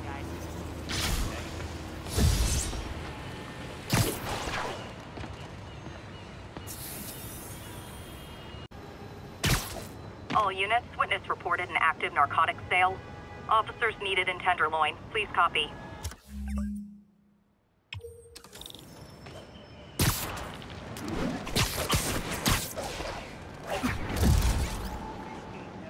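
Whooshing rushes of air sweep past in quick bursts.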